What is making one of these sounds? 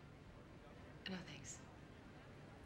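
A young woman speaks briefly and softly, close by.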